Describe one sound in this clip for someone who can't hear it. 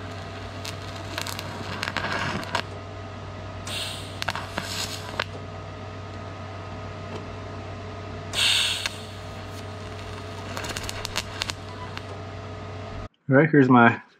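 A welding torch hums and buzzes steadily.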